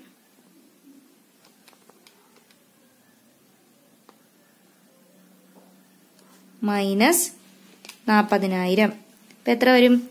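Calculator buttons click softly.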